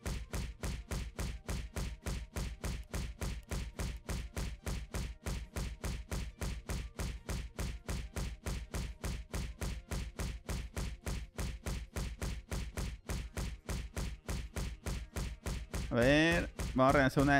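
Quick, even thuds of game kicks repeat steadily.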